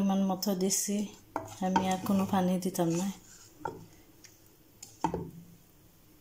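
A wooden spoon stirs and knocks against a metal pot.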